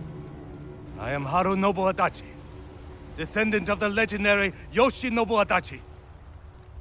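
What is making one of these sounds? A man speaks slowly and gravely, close by.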